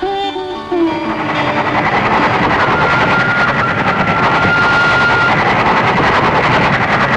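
A train rumbles and clatters loudly along the tracks.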